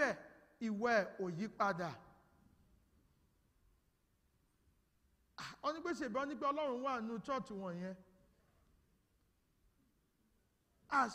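A man speaks calmly and warmly into a microphone in an echoing hall, pausing between phrases.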